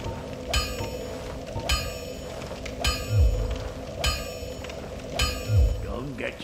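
A hammer strikes an anvil with ringing metallic clangs at a steady pace.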